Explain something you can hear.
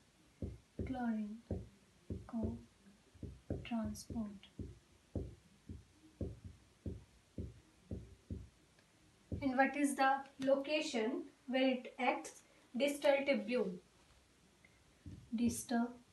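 A young woman speaks calmly nearby, explaining.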